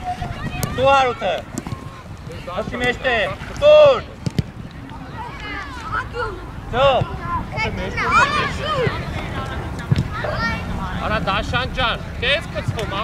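Children shout loudly across an open field.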